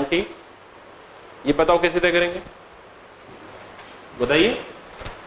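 A man speaks in short phrases, close to a clip-on microphone, explaining calmly.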